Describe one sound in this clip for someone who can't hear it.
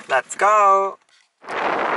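A young man speaks cheerfully close by.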